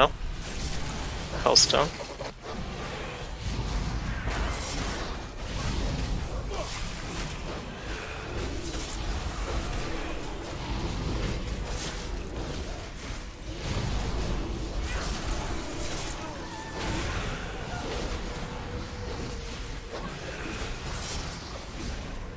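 A man speaks into a microphone in a calm voice.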